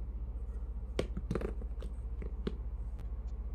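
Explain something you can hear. Plastic phones click and tap as they are handled.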